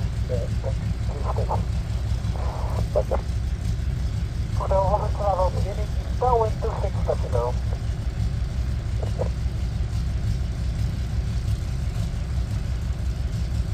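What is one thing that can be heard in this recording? A propeller aircraft engine idles with a steady low rumble.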